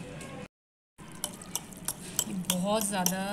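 A fork clinks against a glass bowl while mixing.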